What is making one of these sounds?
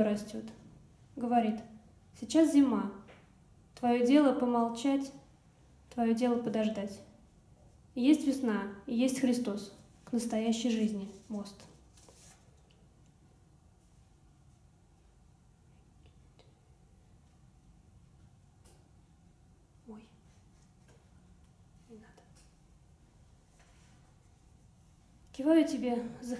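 A young woman reads aloud calmly into a microphone, with pauses.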